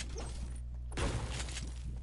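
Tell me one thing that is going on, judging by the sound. A pickaxe strikes stone with a sharp crack.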